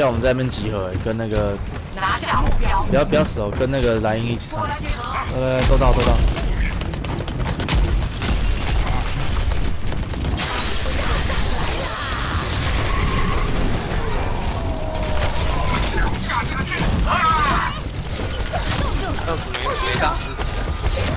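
Gunfire rattles rapidly in a video game.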